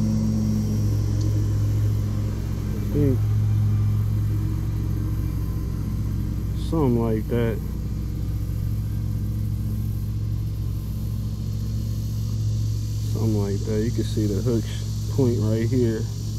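Fingers fiddle softly with a fishing hook and bait.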